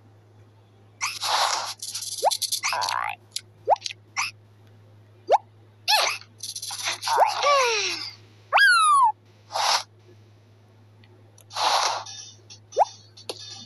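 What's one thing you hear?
Playful cartoon sound effects boing, squeak and whoosh in quick bursts.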